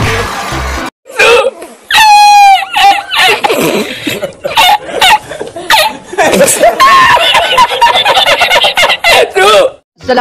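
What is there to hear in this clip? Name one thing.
A man laughs loudly and heartily in bursts.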